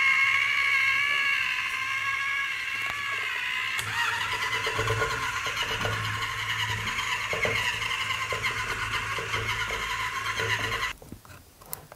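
A small robot's motors whir and whine.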